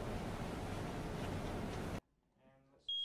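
A woman speaks calmly into a phone.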